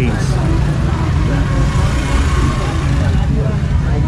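A motorbike engine hums as it rides slowly past.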